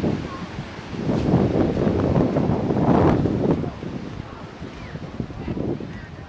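Wind blusters into the microphone outdoors.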